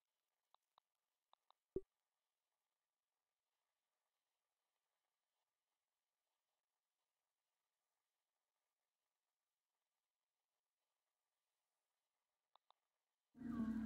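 Soft menu clicks tick a few times.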